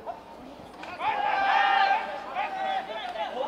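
A crowd of spectators cheers outdoors.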